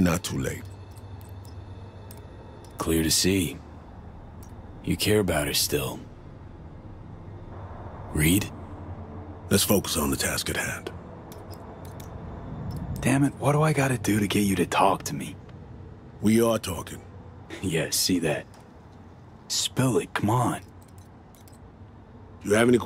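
Keys click as a man types on a keyboard.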